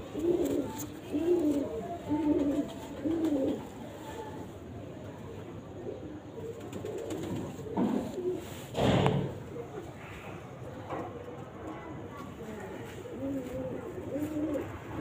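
A pigeon coos softly up close.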